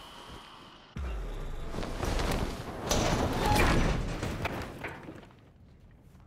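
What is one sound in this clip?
A heavy body is hoisted up with a rustle of cloth and a thud.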